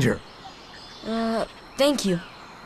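A boy speaks hesitantly.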